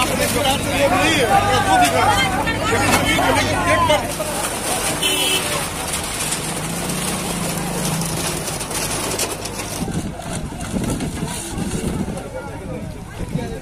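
Wood and metal crunch as a shack is torn down.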